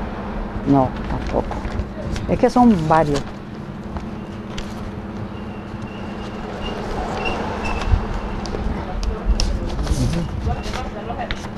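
Papers rustle as pages are turned.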